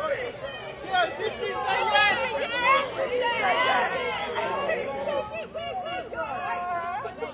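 A woman screams with joy.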